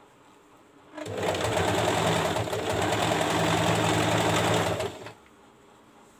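A sewing machine runs in a steady, fast whirr.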